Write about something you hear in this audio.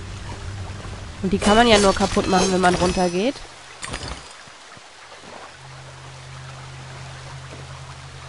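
Water rushes down a waterfall nearby.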